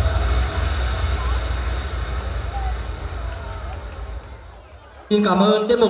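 Pop music with a heavy beat plays loudly over loudspeakers and fades out.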